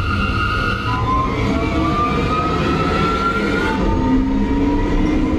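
Electric train motors whine and rise in pitch as the train speeds up.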